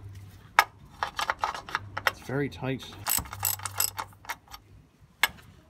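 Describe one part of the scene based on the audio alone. A ratchet wrench clicks as it turns a drain plug.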